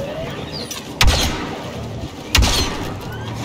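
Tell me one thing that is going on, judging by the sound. Blaster shots fire with sharp, loud bangs.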